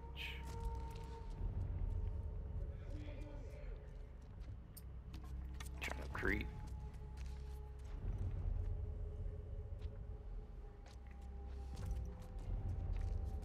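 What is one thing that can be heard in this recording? Footsteps crunch softly on scattered debris.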